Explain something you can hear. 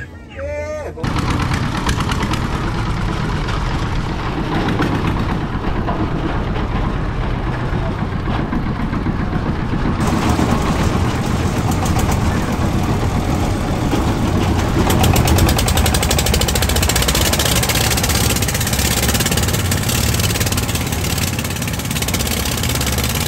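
River water splashes against a moving boat's hull.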